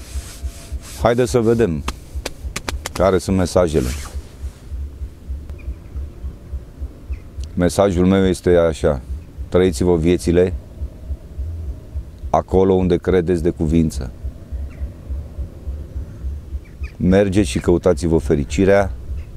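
A middle-aged man speaks calmly and close up, in bursts with pauses.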